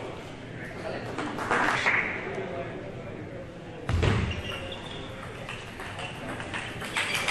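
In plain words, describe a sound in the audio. Spectators murmur in a large echoing hall.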